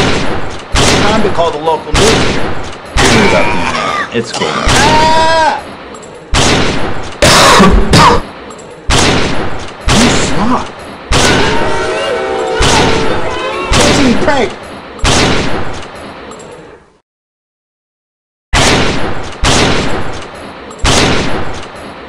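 Sniper rifle shots ring out again and again, each with a short echoing tail.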